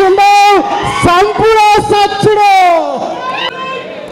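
A man shouts forcefully into a microphone over loudspeakers.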